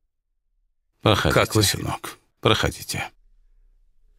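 An elderly man speaks warmly nearby.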